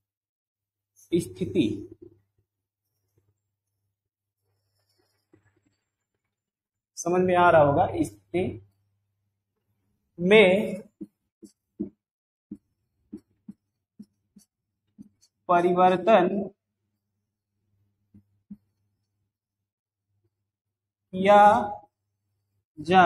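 A man speaks in short bursts, pausing between phrases.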